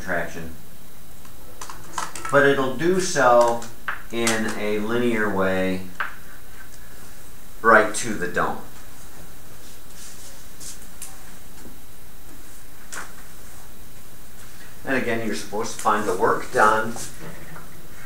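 An elderly man speaks calmly in a lecturing tone.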